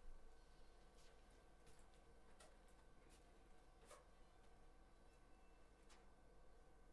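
Footsteps tread softly across a floor.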